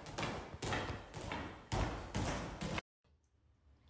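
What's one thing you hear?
A young girl scoots and bumps across a hard floor.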